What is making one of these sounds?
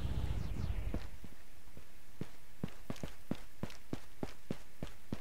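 Footsteps tap on hard ground at a brisk pace.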